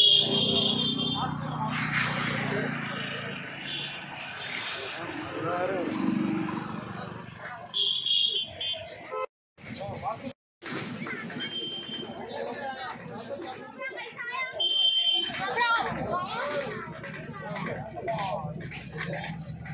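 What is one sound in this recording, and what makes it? A crowd of men and women talk and murmur close by outdoors.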